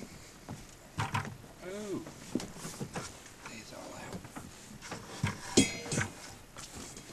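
Items clatter and knock on a boat.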